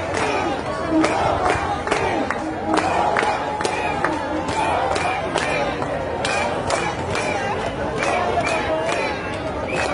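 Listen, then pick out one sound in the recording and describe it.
A crowd claps hands in a steady rhythm.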